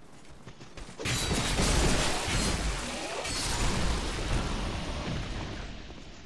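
Weapons clash and slash in a fight.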